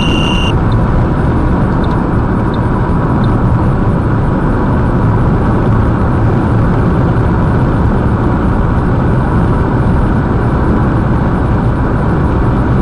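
A car drives along a highway with a steady road and engine rumble from inside.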